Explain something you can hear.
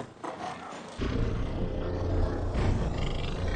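A beast snarls and growls loudly.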